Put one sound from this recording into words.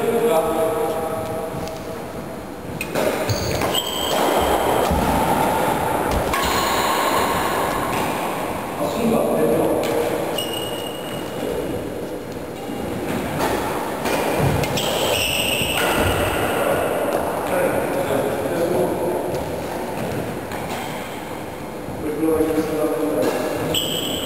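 Sports shoes squeak and thud on a wooden floor.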